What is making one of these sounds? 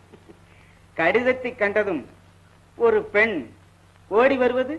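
A woman sings in a high voice, in short phrases.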